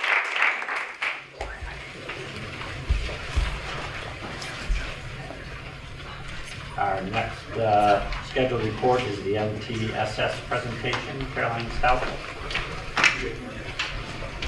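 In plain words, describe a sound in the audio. People murmur quietly in a crowded room.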